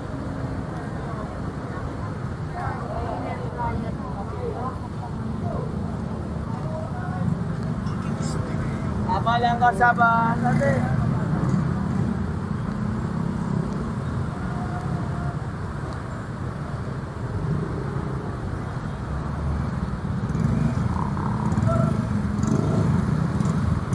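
A crowd of adults chatters in the distance.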